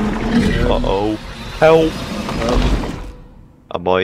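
A huge creature roars with deep, loud growls.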